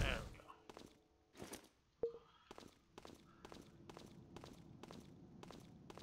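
Footsteps tap on a wooden floor.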